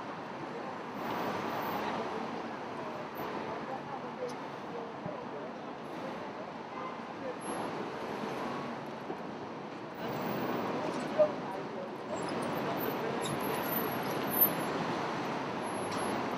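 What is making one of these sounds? Cars drive past one after another.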